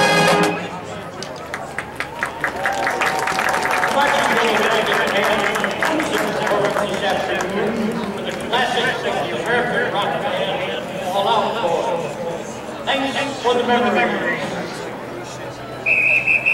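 A marching band plays brass music outdoors.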